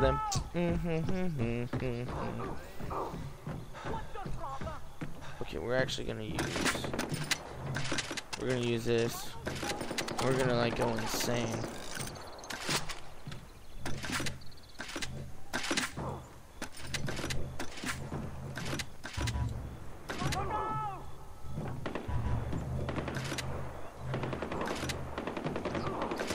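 A young man talks casually into a microphone, close up.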